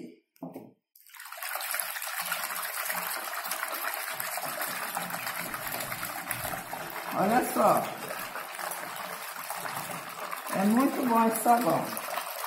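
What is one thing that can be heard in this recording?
A hand swishes and splashes through foamy water.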